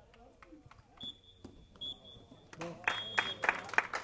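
A referee's whistle blows sharply a few times.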